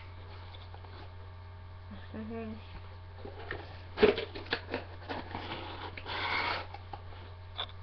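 Hands rustle and tap against a cardboard box.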